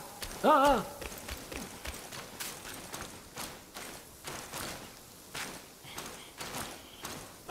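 Footsteps tread on soft ground.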